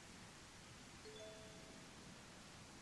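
A short bright chime rings.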